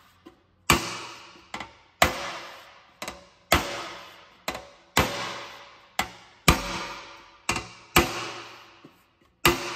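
A hammer strikes sheet metal in a steady rhythm, each blow ringing out briefly.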